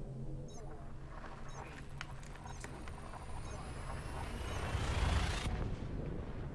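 A spacecraft engine hums and swells into a rising whoosh.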